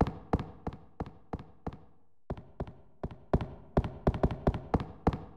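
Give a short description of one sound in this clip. Footsteps thud quickly on wooden boards and echo off stone walls.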